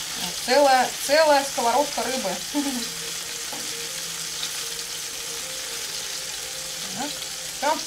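A spoon scrapes and clinks in a pan.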